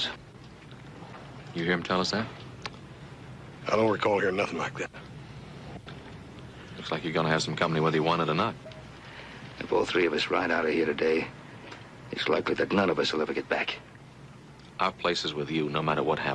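A younger man speaks, close by.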